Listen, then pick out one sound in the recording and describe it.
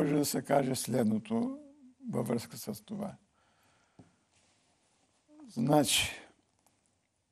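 An elderly man speaks calmly and with feeling into a close microphone.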